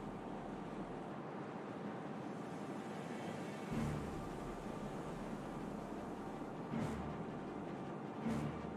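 Water rushes and splashes steadily along a ship's hull.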